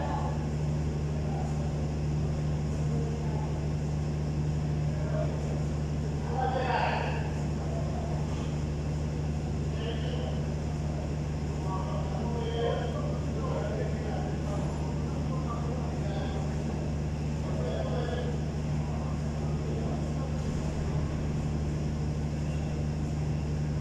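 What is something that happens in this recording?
An engine idles with a steady low hum.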